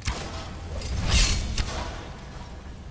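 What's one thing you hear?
A bowstring releases an arrow with a sharp twang.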